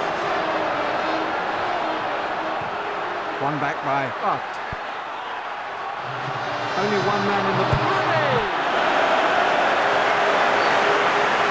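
A stadium crowd roars steadily in a large open space.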